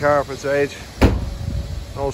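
A car's boot lid slams shut with a thud.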